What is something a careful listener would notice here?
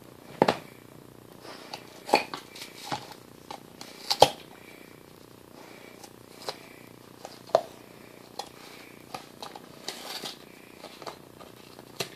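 A rubber toy knocks and scrapes on the floor.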